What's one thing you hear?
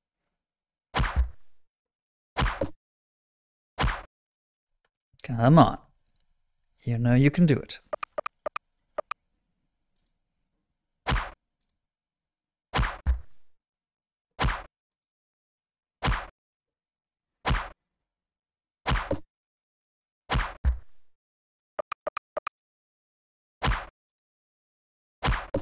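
Game sound effects of swords clashing ring out in short bursts.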